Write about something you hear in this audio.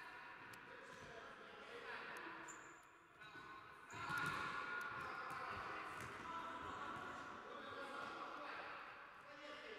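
Young men shout to each other during a game.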